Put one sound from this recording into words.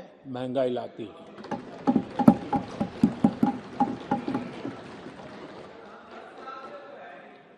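A crowd of men thumps desks and cheers.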